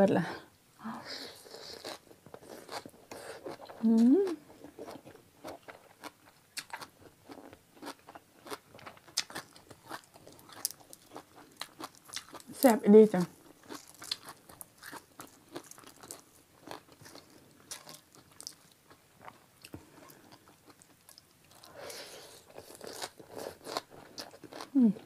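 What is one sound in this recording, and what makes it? A young woman slurps noodles close to a microphone.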